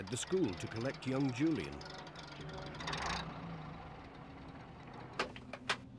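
A small van engine hums as the van pulls up and stops.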